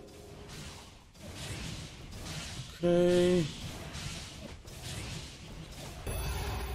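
Game creatures clash with magical whooshes and hits.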